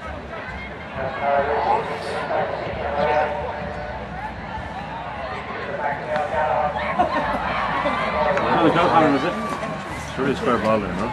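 Men nearby shout and cheer with excitement.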